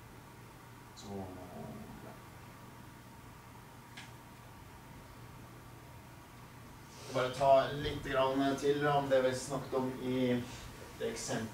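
An elderly man lectures aloud in a room with a slight echo.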